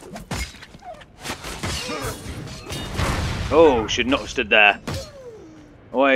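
Fiery blasts burst and roar.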